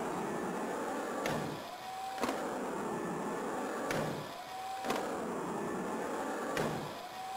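Skateboard wheels roll and rumble on a ramp.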